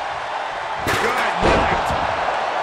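A body slams hard onto a wooden table.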